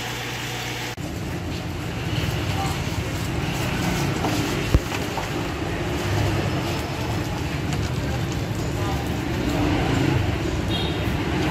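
Chopped grass rustles as hands stir it in a plastic basin.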